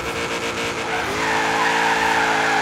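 Tyres screech as a car skids through a bend.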